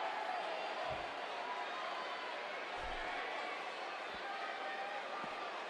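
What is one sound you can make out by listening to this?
A large crowd cheers and whistles loudly in a big echoing arena.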